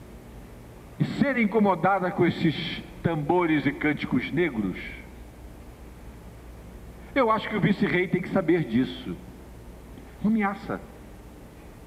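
A middle-aged man speaks with animation through a microphone, in short bursts with pauses.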